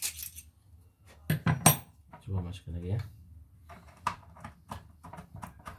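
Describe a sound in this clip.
Small metal parts clink and rattle as they are handled.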